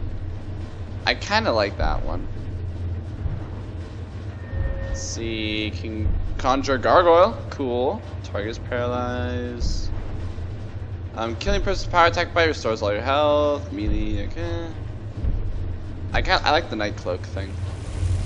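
A young man talks casually into a headset microphone, close by.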